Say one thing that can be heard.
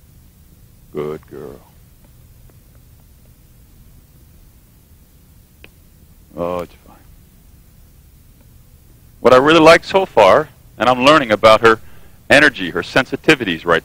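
A man speaks in short bursts, heard through a microphone.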